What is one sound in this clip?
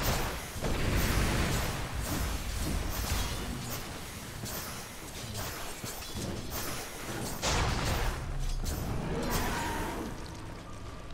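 Combat impacts thud and clang rapidly.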